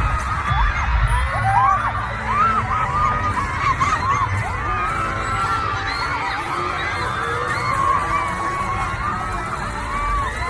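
A crowd of young women screams and shrieks excitedly close by.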